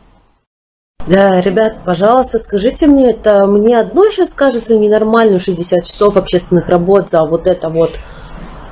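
A young woman speaks with animation close to the microphone.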